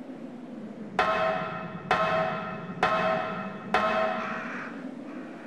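Metal ladder rungs clang loudly with each step of a climb.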